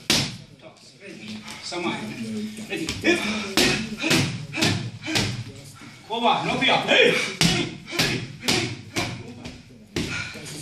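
Boxing gloves smack sharply against focus mitts in an echoing room.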